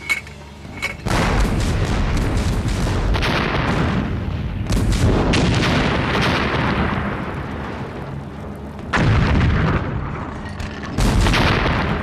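Mortars fire with deep booms.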